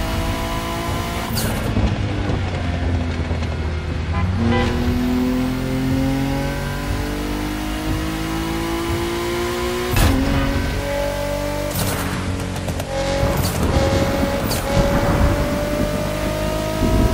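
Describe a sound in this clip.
A car engine hums and revs up steadily through the gears.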